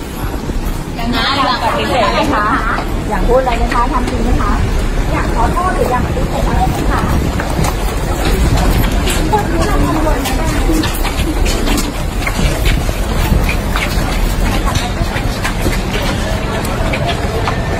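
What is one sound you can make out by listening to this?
A crowd of men and women talk and call out over one another close by.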